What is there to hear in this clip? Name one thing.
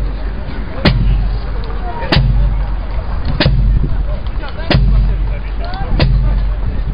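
Brass instruments play a marching tune.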